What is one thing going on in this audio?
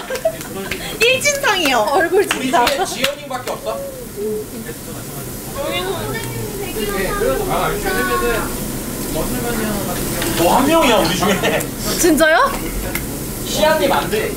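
Young women and men chat and laugh animatedly around a table.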